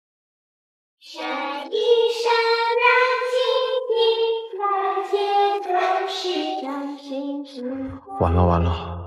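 A young child sings a slow tune.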